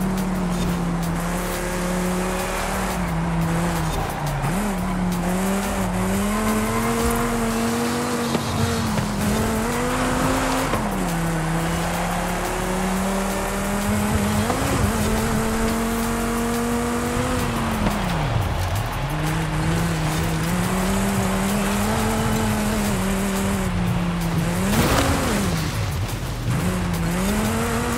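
A sports car engine roars steadily, revving up and dropping with gear shifts.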